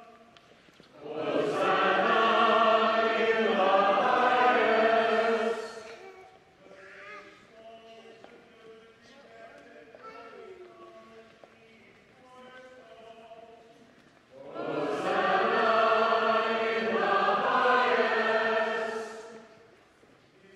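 A large congregation sings together in a big echoing hall.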